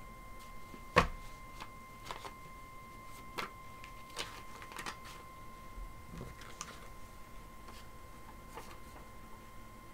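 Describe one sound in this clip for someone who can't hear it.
Paper and cards rustle and tap as they are handled.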